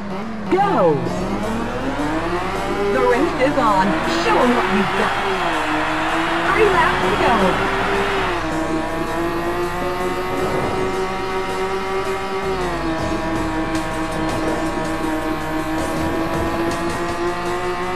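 A racing car engine roars and climbs in pitch as it speeds up, dropping briefly at each gear change.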